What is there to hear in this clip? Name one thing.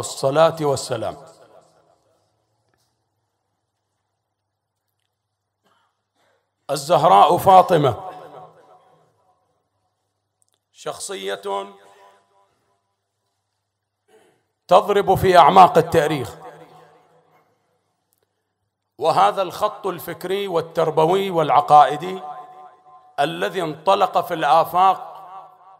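A man speaks into a microphone with feeling, in bursts separated by pauses.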